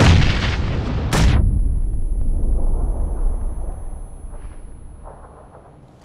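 A loud explosion booms and its rumble slowly fades.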